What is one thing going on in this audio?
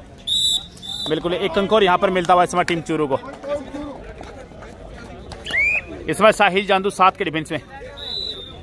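A young man chants loudly and rapidly close by.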